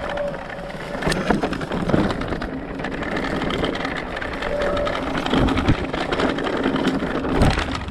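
Bicycle tyres roll and rattle over bumpy, stony ground.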